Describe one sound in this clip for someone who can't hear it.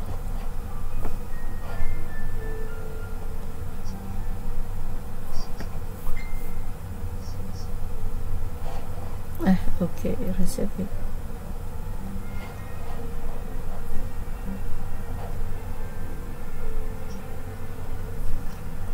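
A middle-aged woman speaks through an online call.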